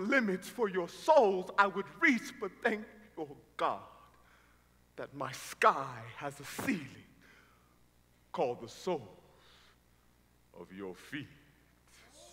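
A young man speaks loudly and with animation through a microphone in a large echoing hall.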